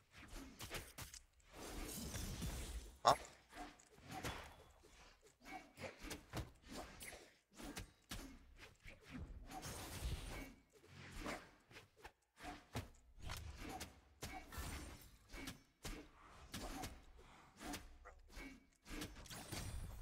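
Punchy hit and whoosh sound effects burst out in quick succession.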